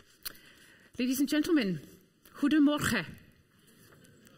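Another woman speaks briefly through a microphone.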